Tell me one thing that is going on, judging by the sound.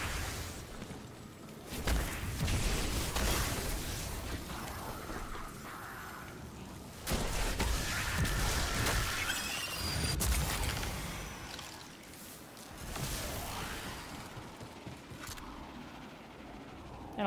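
Loud electric crackles and blasts ring out in a video game battle.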